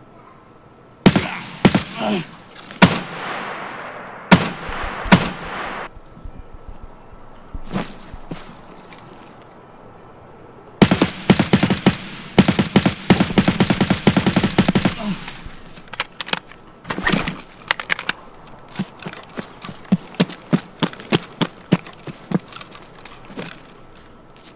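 Footsteps rustle through dense brush and grass.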